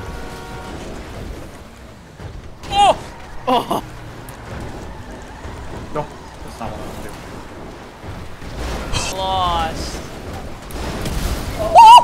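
A heavy truck crashes and tumbles with loud metallic thuds.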